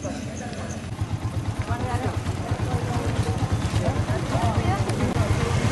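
A crowd of men talks and calls out excitedly outdoors.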